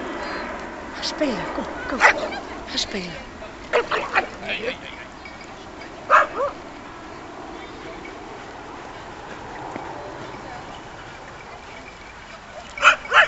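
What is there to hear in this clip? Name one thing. Dogs bark and yelp outdoors.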